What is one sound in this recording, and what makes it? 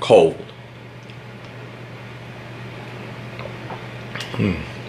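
A man gulps down a drink from a bottle.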